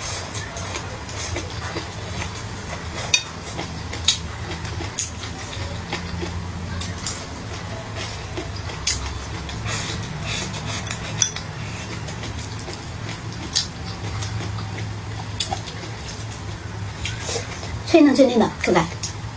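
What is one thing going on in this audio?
Chopsticks tap against a bowl.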